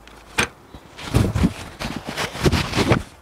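Paper rustles close by.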